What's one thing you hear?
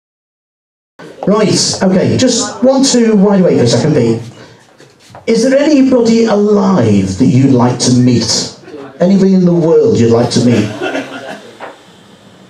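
A man speaks calmly and steadily close by.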